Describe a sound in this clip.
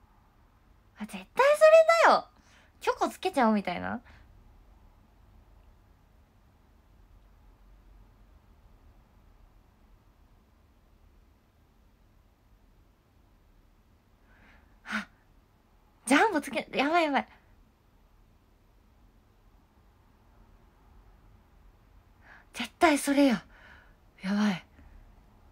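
A young woman speaks close to a microphone in short, expressive bursts with long pauses between.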